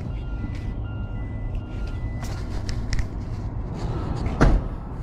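Gloved hands rub and knock against hard plastic.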